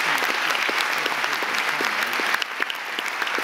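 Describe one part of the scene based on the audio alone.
A man claps his hands.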